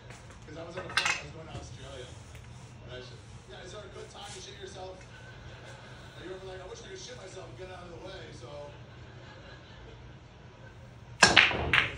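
A cue stick strikes a pool ball with a sharp click.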